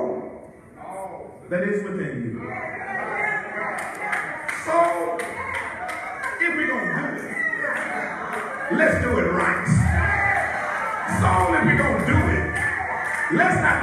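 An elderly man preaches with rising passion into a microphone, his voice filling an echoing hall.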